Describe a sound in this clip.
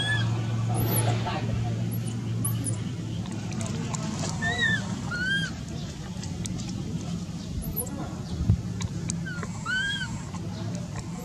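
A baby macaque cries in short, high-pitched squeals.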